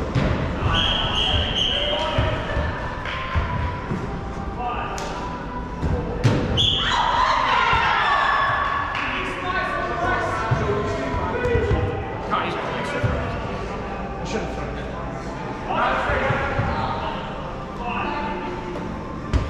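Young men and women shout and call out to each other in a large echoing hall.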